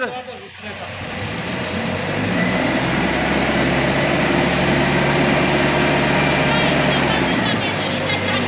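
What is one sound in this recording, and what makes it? A forklift engine hums steadily nearby.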